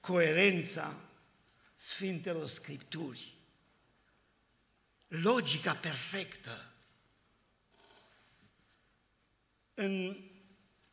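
An elderly man speaks with animation into a microphone, in short bursts with pauses.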